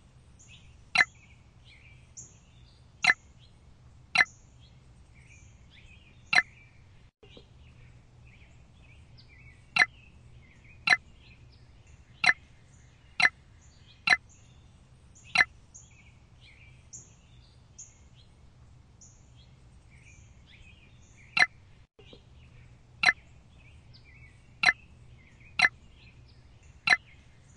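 Game pieces click sharply into place, one at a time every second or two.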